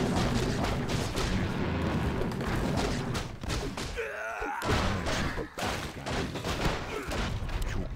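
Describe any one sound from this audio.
Weapons clash and strike repeatedly in a busy battle.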